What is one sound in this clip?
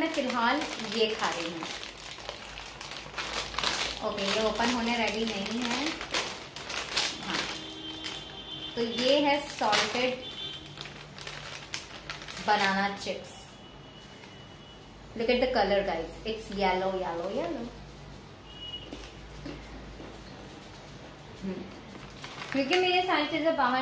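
A plastic snack packet crinkles and rustles.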